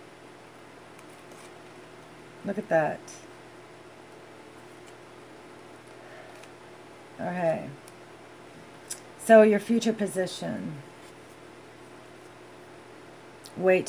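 Playing cards rustle and tap softly as hands handle them.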